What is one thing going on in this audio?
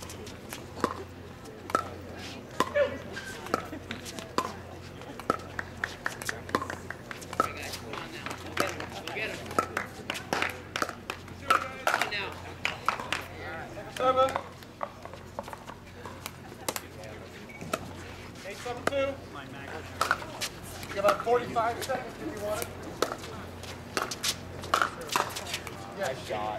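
Paddles pop sharply against a plastic ball in quick rallies.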